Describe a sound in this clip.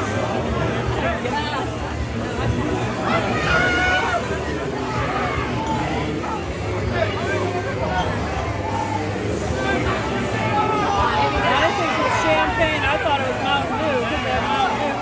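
A crowd of men cheer and shout in celebration outdoors.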